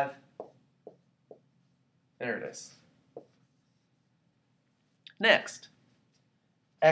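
A man speaks calmly and clearly, close by, in short phrases with pauses.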